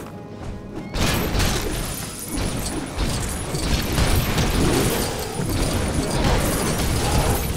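Small coins jingle and clatter as they scatter.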